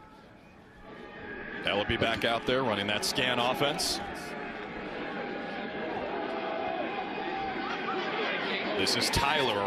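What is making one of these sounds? A large stadium crowd cheers and roars, growing louder.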